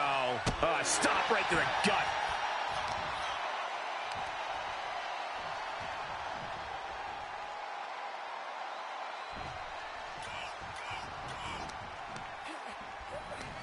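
Body blows thud on a wrestling mat.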